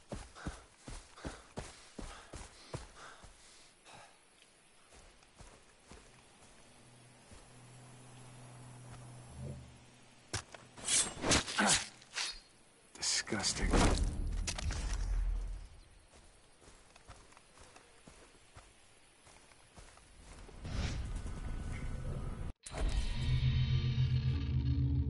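A young man talks calmly into a microphone.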